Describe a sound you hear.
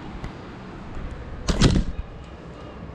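Something bumps and rubs right against the microphone.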